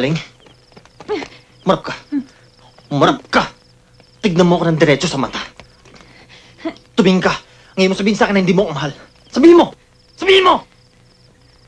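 A man speaks in a low voice close by.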